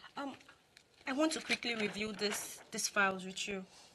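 Another young woman answers with irritation nearby.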